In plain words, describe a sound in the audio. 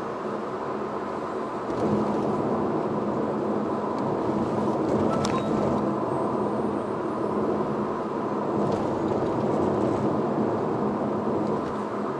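A car engine hums steadily from inside the cabin as the car drives along.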